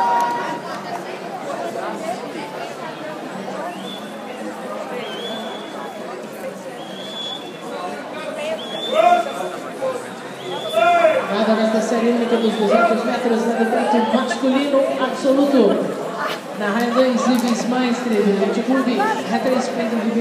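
Spectators chatter and murmur nearby.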